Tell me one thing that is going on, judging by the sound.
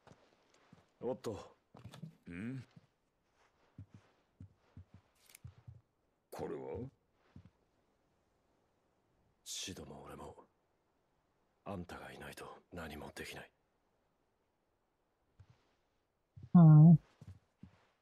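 A second man answers in a deep, gruff voice.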